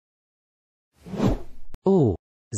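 Keys jingle briefly.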